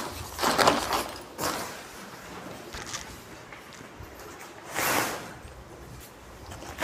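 Nylon tent fabric rustles and crinkles as it is handled.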